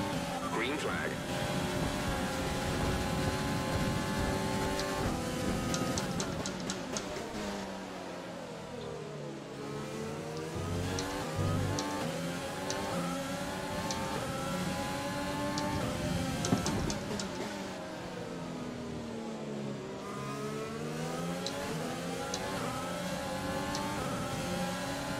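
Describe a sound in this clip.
A racing car engine roars, rising and falling in pitch as it shifts gears and slows for corners.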